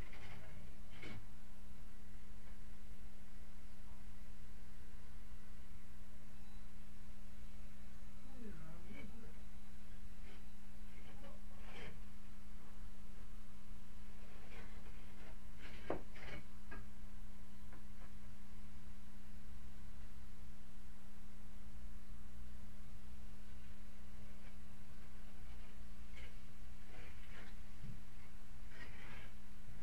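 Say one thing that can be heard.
A person on a ladder knocks and scrapes at a ceiling.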